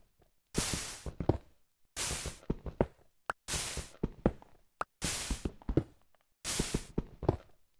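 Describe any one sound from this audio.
Stone blocks crumble apart with crunchy bursts again and again.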